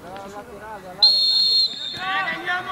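A referee's whistle blows one sharp blast.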